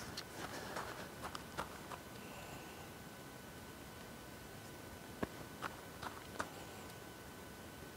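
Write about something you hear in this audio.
A golf club brushes through grass in short practice swings.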